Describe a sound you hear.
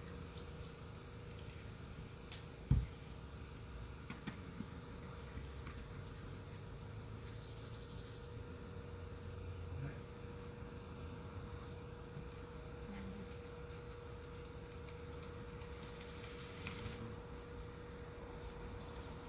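A crane's engine hums steadily.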